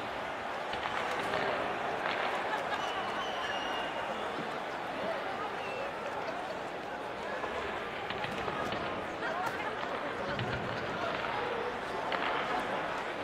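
A hockey stick smacks a puck.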